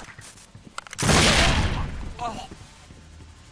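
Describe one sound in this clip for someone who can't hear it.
A submachine gun fires a rapid burst of shots.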